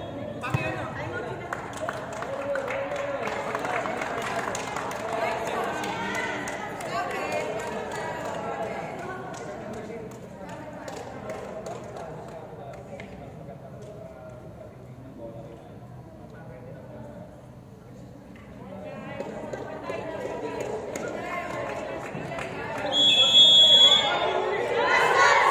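Young women chatter and call out in a large echoing hall.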